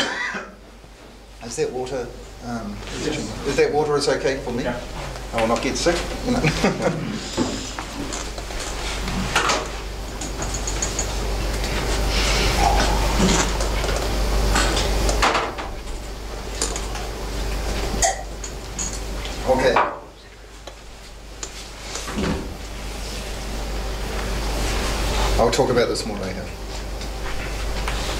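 A middle-aged man speaks with animation in an echoing room.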